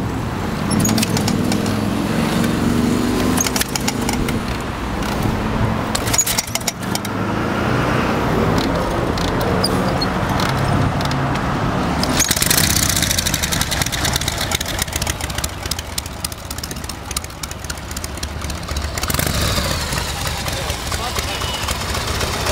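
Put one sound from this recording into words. A motorcycle engine idles close by with a low, uneven thumping.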